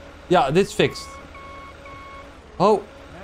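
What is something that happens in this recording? A forklift's warning alarm beeps in short, even pulses.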